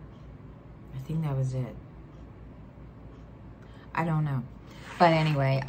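A middle-aged woman speaks close to a microphone in short, calm phrases.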